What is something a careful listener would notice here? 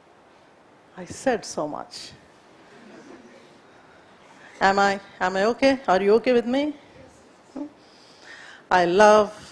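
A woman speaks calmly and clearly nearby.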